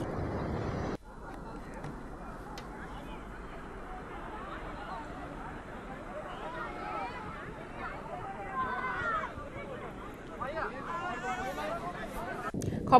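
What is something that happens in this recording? A crowd of men talks and calls out outdoors.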